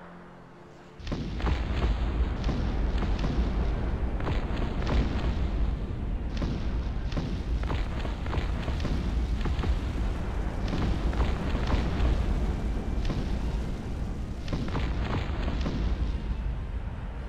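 Explosions boom again and again.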